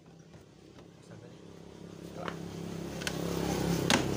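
Hands rattle and knock a plastic panel.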